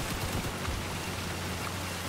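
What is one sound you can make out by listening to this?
Water splashes around a tank driving through a stream.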